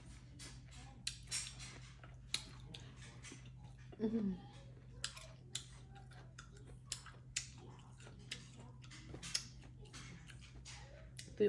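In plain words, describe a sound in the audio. A woman chews food loudly and smacks her lips close to a microphone.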